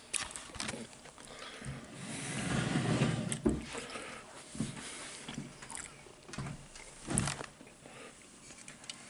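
A middle-aged man talks quietly and close by.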